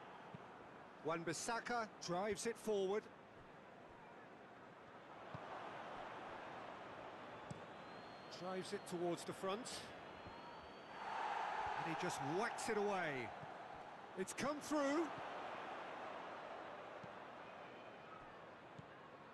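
A large stadium crowd murmurs and swells into a roar.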